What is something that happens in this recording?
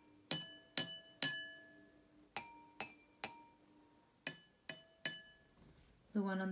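A spoon taps against a drinking glass, which rings out with a clear bright chime.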